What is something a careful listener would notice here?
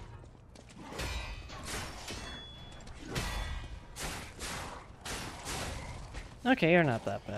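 Swords clash and slash in quick, sharp strikes.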